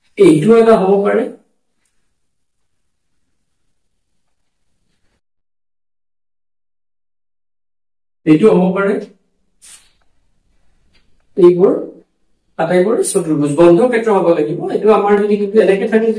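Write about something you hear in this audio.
A man speaks calmly and clearly, as if explaining, close by.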